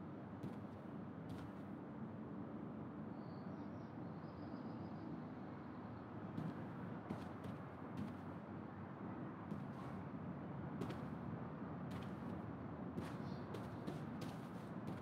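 Footsteps tread across a floor indoors.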